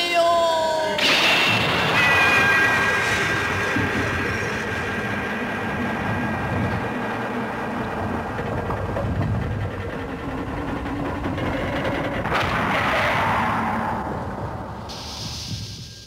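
Rocks rumble and grind as they pile up.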